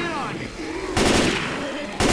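A rifle fires a burst of loud shots.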